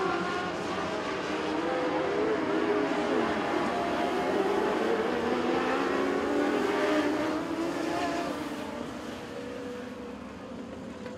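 Several racing car engines roar and whine, rising and falling as the cars speed around a dirt track.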